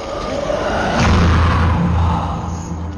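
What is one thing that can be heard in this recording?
A figure lets out a loud, piercing shriek.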